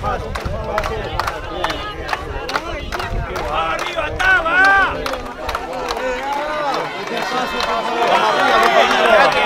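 A crowd of men and women chatters and calls out close by outdoors.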